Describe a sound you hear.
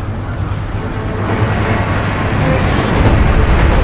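A heavy metal shell rumbles as it is pushed along.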